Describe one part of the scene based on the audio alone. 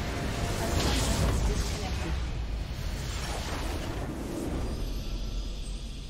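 A loud magical explosion booms and crackles.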